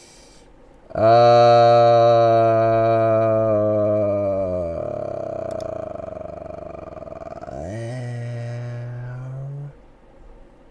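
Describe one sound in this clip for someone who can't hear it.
A man sings a long, drawn-out note loudly into a microphone, his voice sliding down.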